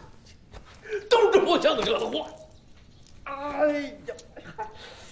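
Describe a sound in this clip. An elderly man exclaims loudly nearby.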